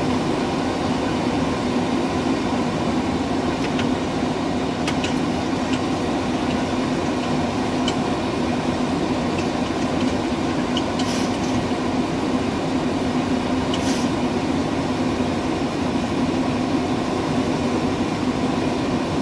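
A steady engine and air roar fills an aircraft cockpit.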